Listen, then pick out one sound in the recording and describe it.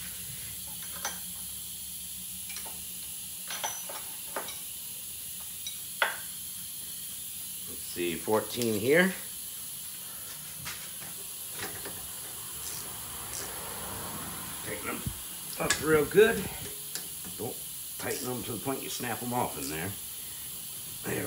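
Metal tools click and clink against car parts.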